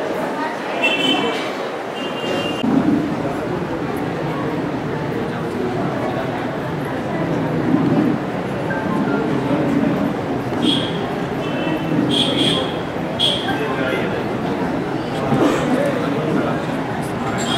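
A man speaks steadily through a microphone and loudspeaker.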